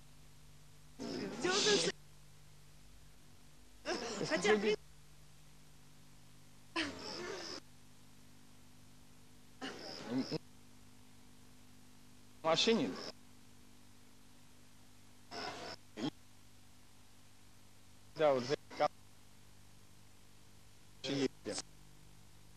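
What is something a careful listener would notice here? A young man speaks close by in short bursts with pauses between.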